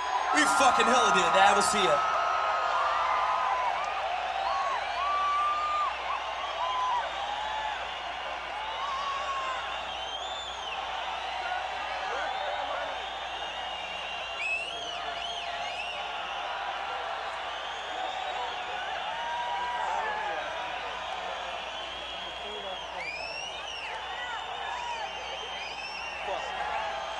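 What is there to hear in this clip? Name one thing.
A large crowd cheers and screams in a big echoing hall.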